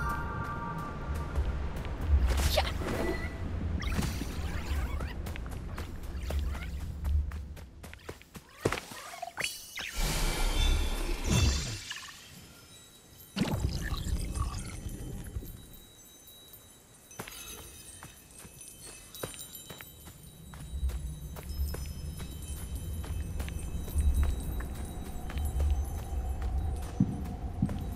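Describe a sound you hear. Quick footsteps rustle through tall grass.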